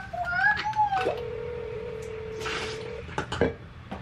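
Liquid pours into a metal bottle.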